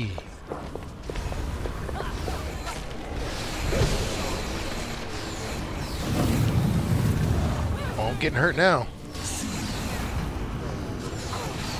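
Magic fire roars and crackles in bursts.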